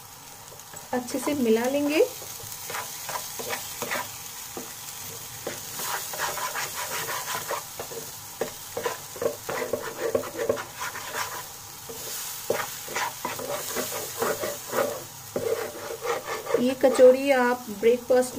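A spatula scrapes and stirs a thick paste in a pan.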